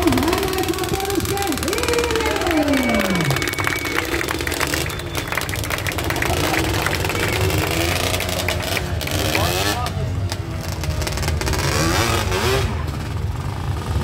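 A quad bike engine revs and roars loudly.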